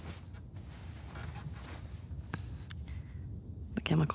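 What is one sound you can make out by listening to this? A second young woman murmurs a short hesitant reply.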